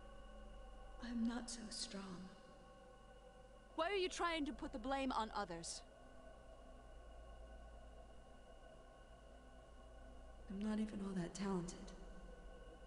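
A young woman speaks quietly and sadly, close by.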